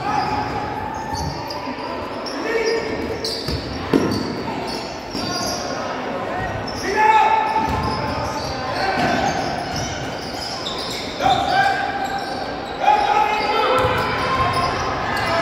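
Spectators call out and cheer from the stands.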